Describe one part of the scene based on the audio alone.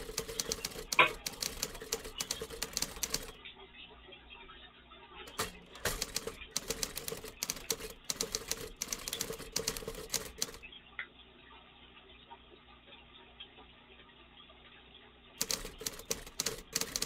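Computer keys clatter in quick bursts of typing, close by.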